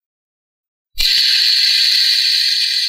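A plastic fidget spinner whirs as it spins.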